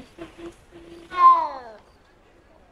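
A cat meows loudly.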